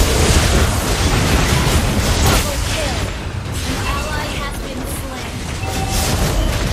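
Game spell effects whoosh and crash in a busy battle.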